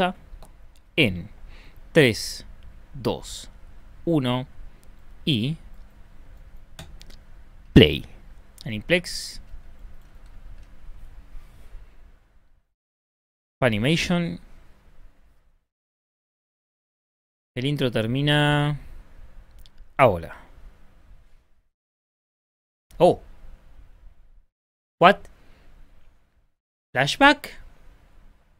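A young man speaks with animation into a close microphone, in short bursts with pauses.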